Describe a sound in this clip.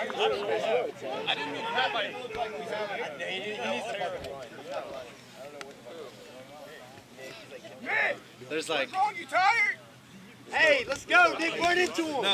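Young men call out to each other across an open field outdoors.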